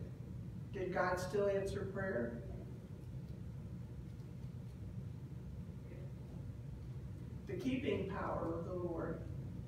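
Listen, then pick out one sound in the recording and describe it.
A middle-aged woman speaks slowly through a microphone, pausing between phrases.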